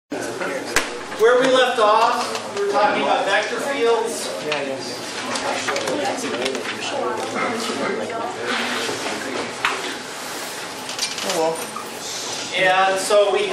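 A middle-aged man speaks clearly to a group in an echoing room.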